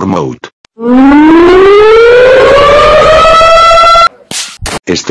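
A man screams loudly, his voice rising in pitch.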